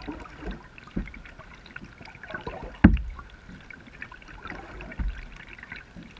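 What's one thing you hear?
A kayak paddle knocks against a plastic hull.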